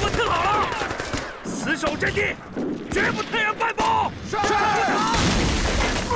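A man shouts orders close by.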